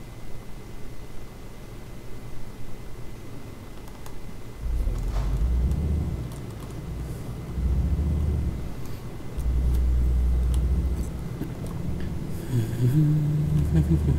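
A truck engine rumbles steadily, swelling and easing in bursts.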